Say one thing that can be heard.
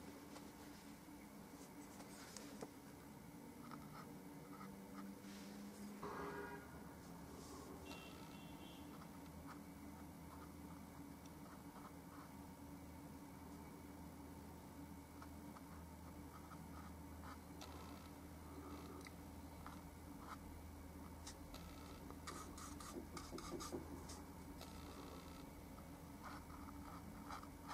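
A paintbrush dabs and strokes softly on canvas.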